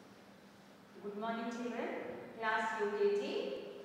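A woman speaks clearly and loudly nearby in an echoing room.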